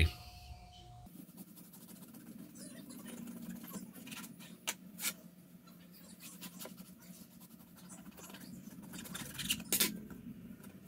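A serrated knife saws through a crusty loaf of bread, the crust crackling.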